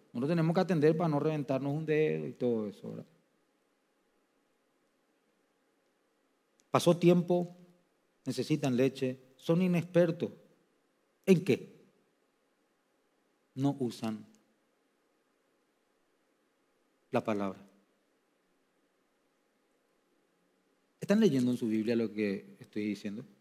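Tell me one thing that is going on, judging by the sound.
A man speaks into a microphone with slow, deliberate pauses.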